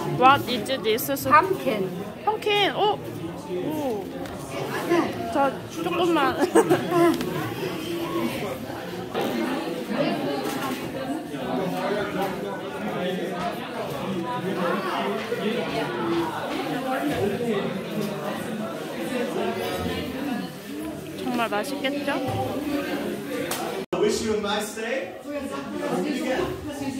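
Men and women chat in the background of a busy room.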